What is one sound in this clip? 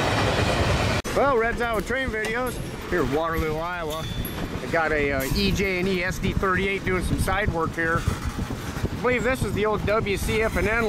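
A freight train rolls past close by, its wheels rumbling and clattering on the rails.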